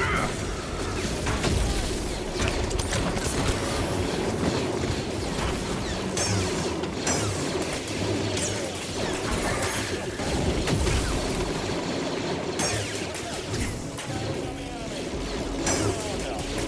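A lightsaber hums and clashes as it swings.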